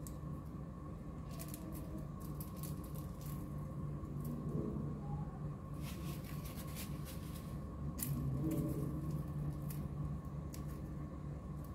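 A plastic bag crinkles and rustles between fingers.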